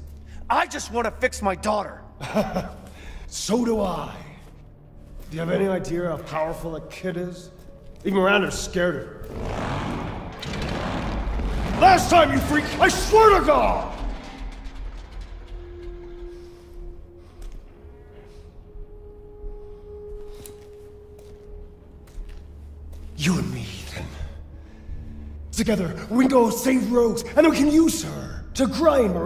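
A man speaks in a gruff, menacing voice close by.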